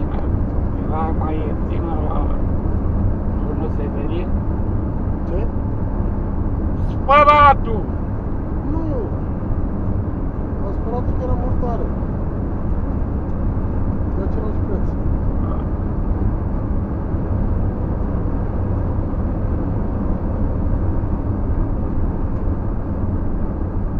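A vehicle engine hums steadily as tyres roll over the road.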